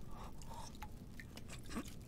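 A man slurps from a bowl.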